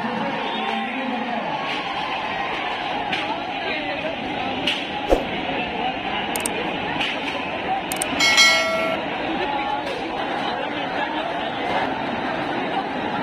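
A large crowd shouts and clamors outdoors.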